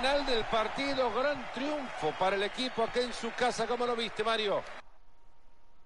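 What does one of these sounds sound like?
A stadium crowd cheers and chants loudly.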